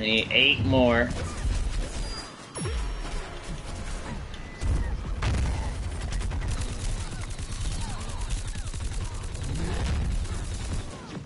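A man speaks casually into a microphone.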